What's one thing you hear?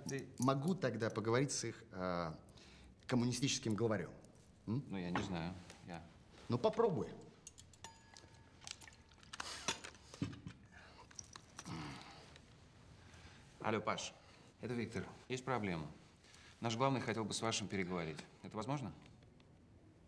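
A man talks with animation.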